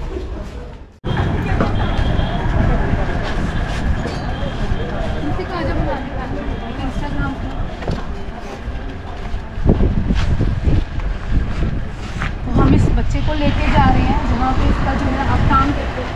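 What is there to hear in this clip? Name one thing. A man and a woman talk nearby.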